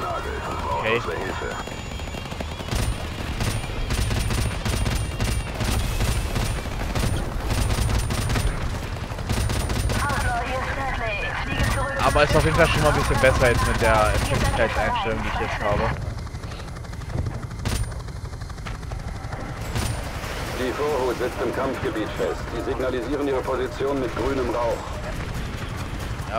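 A helicopter's rotor thumps steadily close by.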